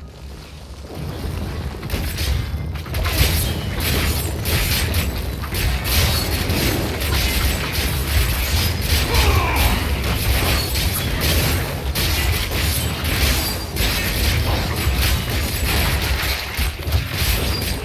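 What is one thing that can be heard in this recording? Game swords clash and hit in quick, repeated blows.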